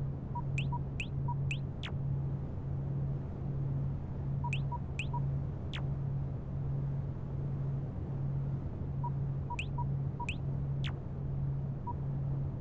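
Short electronic interface blips and chirps sound as a game menu opens and closes.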